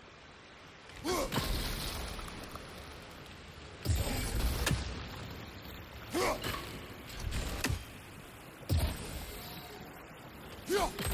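A heavy axe strikes with loud, booming magical bursts.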